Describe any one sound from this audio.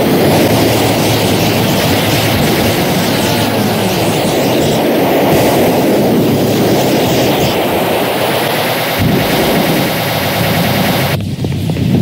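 A jetpack roars steadily with a loud rushing thrust.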